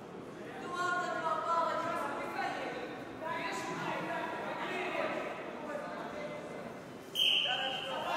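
A crowd of young spectators chatters in a large echoing hall.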